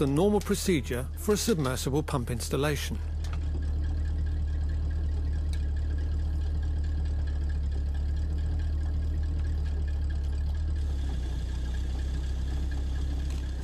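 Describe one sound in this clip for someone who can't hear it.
An engine hums steadily nearby.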